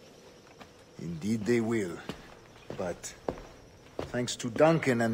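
An elderly man speaks in a low, measured voice.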